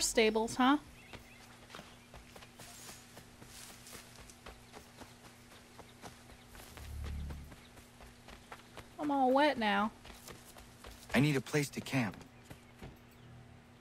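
Footsteps run quickly over grass and wooden boards.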